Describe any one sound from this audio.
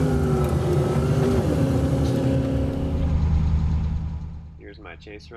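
A car engine roars loudly, heard from inside the car.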